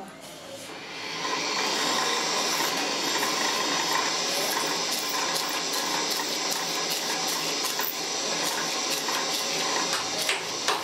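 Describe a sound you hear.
A motor-driven sanding wheel whirs steadily.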